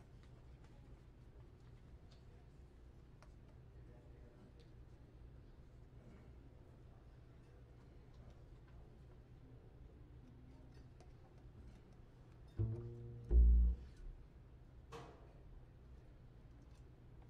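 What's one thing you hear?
A drum kit is played softly with brushes and cymbals.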